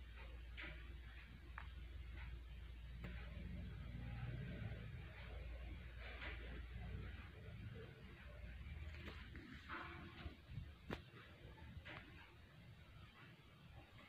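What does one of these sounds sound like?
Clothing rustles as a rabbit is handled up close.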